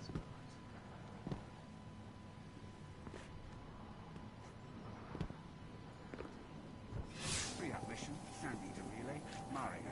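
Footsteps tap on hard ground.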